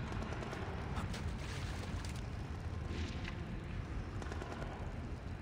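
Footsteps patter softly on a metal floor.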